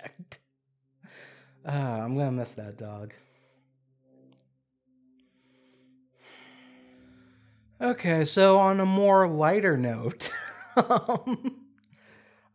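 A young man talks casually and animatedly into a close microphone.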